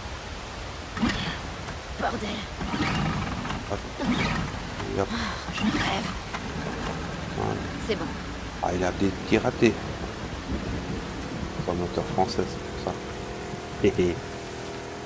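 A starter cord is yanked repeatedly on a small outboard motor.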